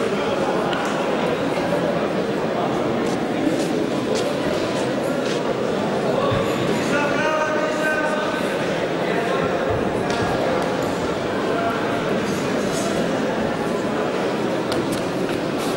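Bare feet shuffle and thump on a mat.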